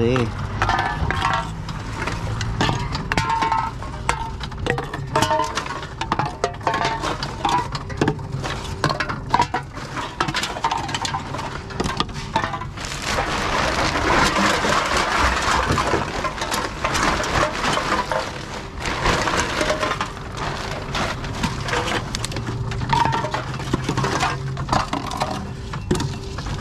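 A recycling machine hums steadily.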